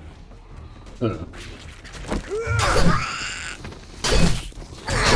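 A zombie snarls and groans close by.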